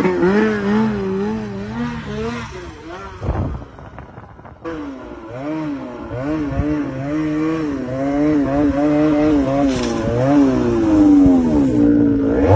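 A snowmobile engine revs up and down nearby.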